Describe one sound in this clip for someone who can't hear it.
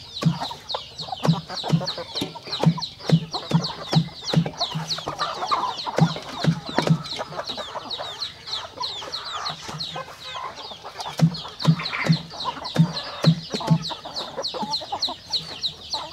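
Chickens peck rapidly at a metal bowl.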